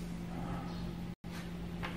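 A hand brushes lightly across a sheet of paper.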